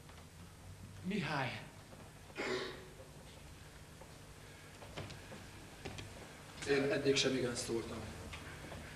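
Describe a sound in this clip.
A man speaks loudly in an echoing hall.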